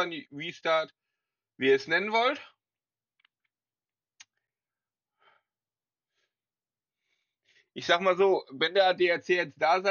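A man talks calmly into a close microphone, with pauses.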